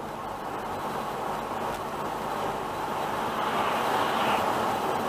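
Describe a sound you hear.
Tyres roar steadily on the road as a car drives along.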